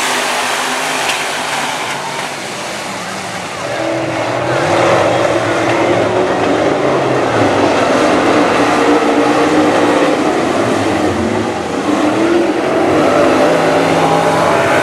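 Race car engines roar loudly and rise and fall in pitch.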